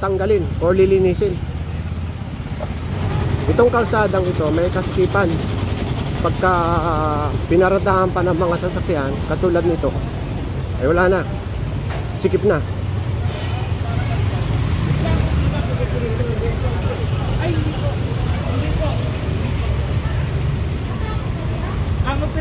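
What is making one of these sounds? Motorcycle engines idle and rumble nearby outdoors.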